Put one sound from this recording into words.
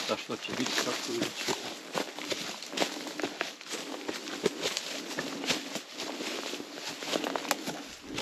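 Dry twigs and leaves rustle and crackle as someone pushes through brush.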